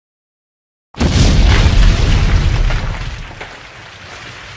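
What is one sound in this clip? A burst of flame roars loudly and dies away.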